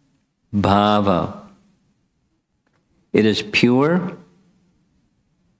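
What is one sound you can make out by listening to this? An elderly man speaks slowly and calmly into a close microphone, drawing out his words in a sung tone.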